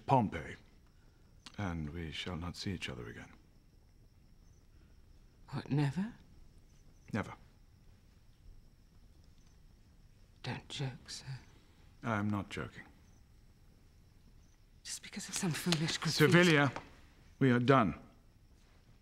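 A woman speaks softly, close by, in short phrases with pauses.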